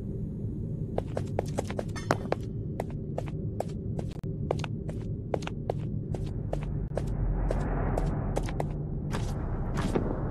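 Footsteps tap steadily on a hard floor in an echoing corridor.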